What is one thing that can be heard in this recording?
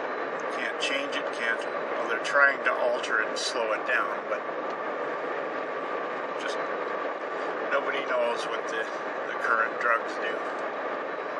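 An elderly man talks close by, with animation.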